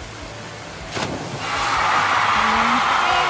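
A person plunges into water with a big splash.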